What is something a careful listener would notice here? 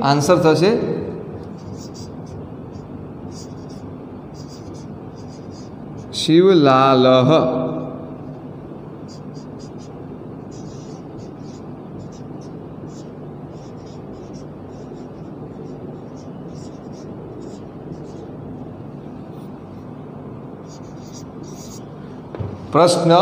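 A marker squeaks softly on a whiteboard.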